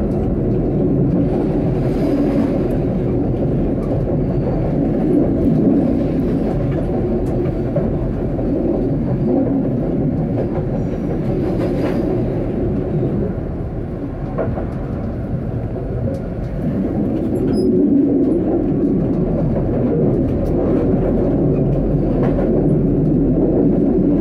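A tram rumbles steadily along the rails.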